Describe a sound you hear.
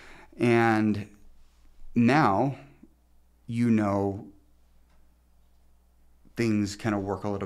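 A middle-aged man speaks close to a microphone in short, lively bursts.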